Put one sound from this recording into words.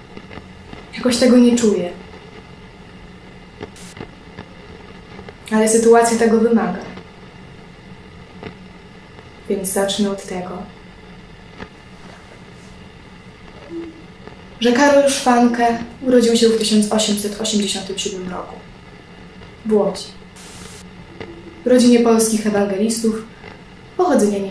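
A young woman speaks softly and slowly in short phrases, close by.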